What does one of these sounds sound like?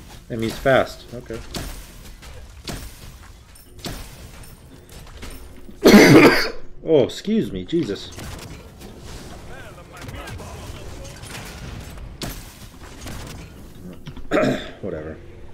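Game sword swings and hit effects whoosh and clang.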